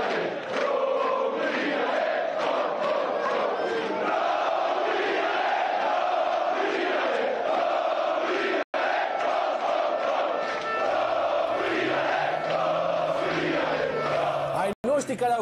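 A large crowd cheers and chants loudly in a stadium.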